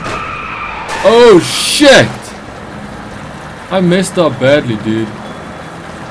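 Car tyres screech in short bursts.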